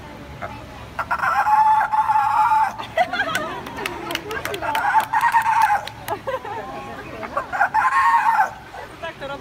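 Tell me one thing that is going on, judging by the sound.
A sea lion barks loudly.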